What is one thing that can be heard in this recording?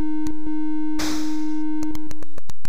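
A short burst of electronic hiss sounds from a retro video game.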